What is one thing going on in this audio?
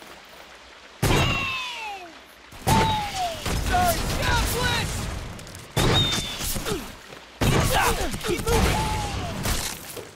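Loud blasts go off in sudden bursts.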